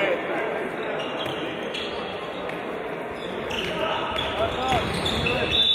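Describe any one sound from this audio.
Shoes squeak sharply on a hard court in a large echoing hall.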